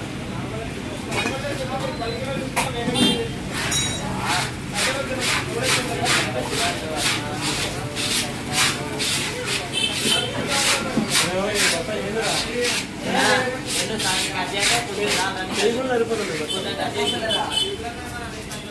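A blade scrapes scales off a fish with quick rasping strokes.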